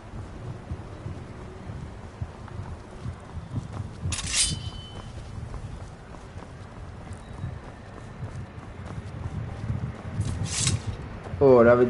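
Footsteps crunch steadily over stone and gravel.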